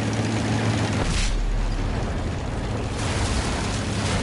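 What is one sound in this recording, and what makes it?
A shell explodes with a loud boom.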